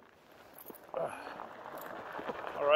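Bicycle tyres roll over a dirt trail.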